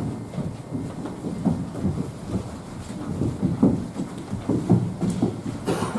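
Footsteps shuffle as several people walk.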